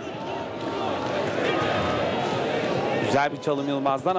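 A large crowd chants and cheers in a stadium.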